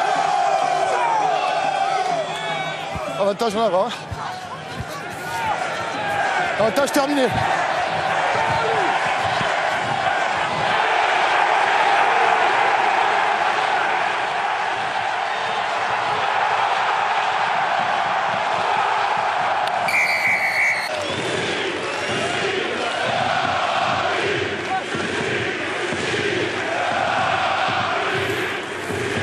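A large crowd cheers and roars loudly in an open stadium.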